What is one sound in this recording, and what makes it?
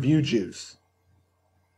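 A young man speaks briefly close to a microphone.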